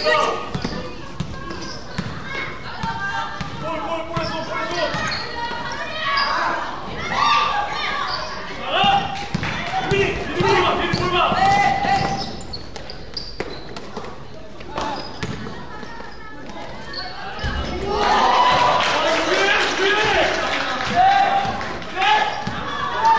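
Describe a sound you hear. Spectators chatter and cheer in a large echoing hall.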